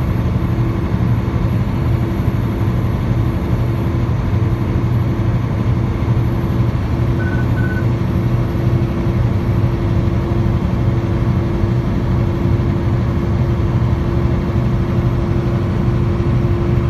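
A car's engine hums steadily and its tyres roar on the road from inside the car.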